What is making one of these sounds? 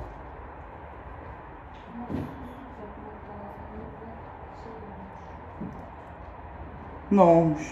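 A knife scrapes the skin of an avocado.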